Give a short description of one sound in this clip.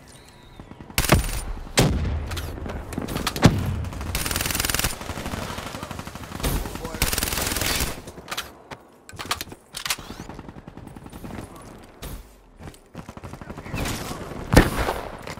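Gunshots ring out in sharp, loud bursts.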